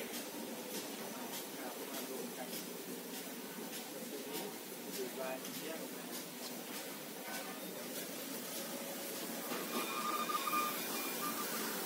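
Factory machines hum and clatter steadily in a large echoing hall.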